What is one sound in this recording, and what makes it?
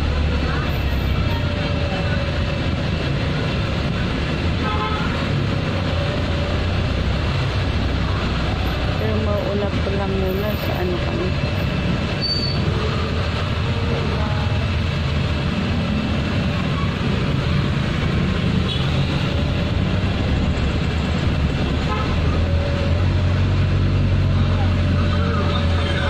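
A vehicle engine hums steadily from inside the cabin.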